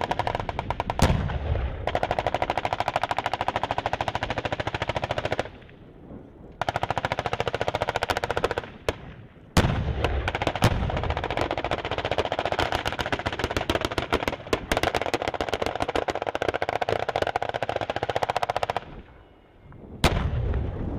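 A tank cannon fires with loud, sharp booms.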